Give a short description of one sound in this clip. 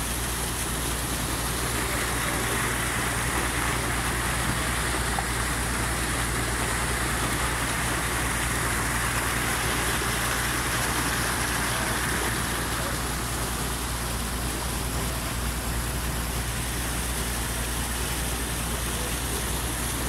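Muddy water rushes and churns loudly through a channel close by.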